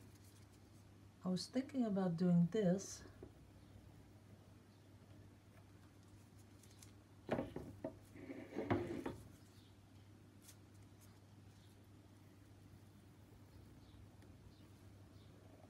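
A wooden stick dabs and drags softly through wet paint.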